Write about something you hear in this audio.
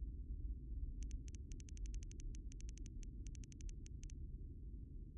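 Rapid high electronic beeps tick in quick bursts as letters type out.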